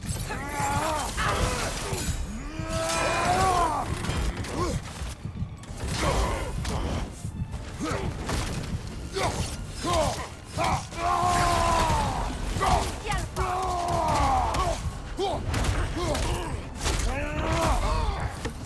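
Heavy weapons strike with loud, thudding blows.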